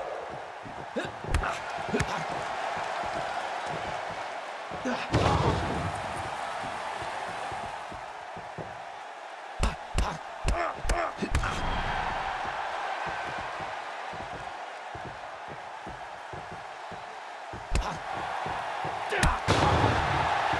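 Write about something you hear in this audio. Heavy thuds and slams of bodies hitting a wrestling ring sound now and then.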